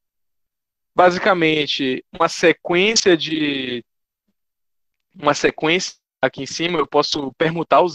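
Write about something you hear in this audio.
A man speaks calmly through a microphone, as on an online call.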